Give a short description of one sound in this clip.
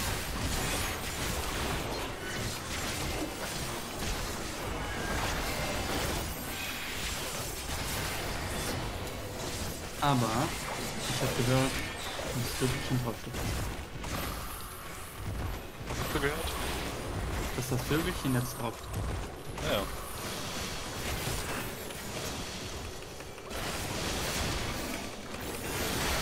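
Spell effects whoosh and crackle in a fantasy battle.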